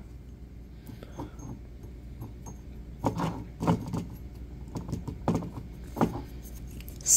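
A bottle knocks against a hard surface as it is set down and handled.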